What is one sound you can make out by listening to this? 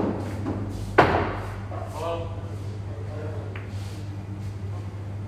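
Pool balls roll across the table.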